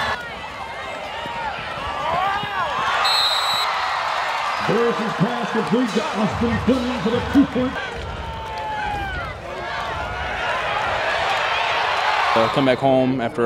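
A stadium crowd cheers and shouts in the stands.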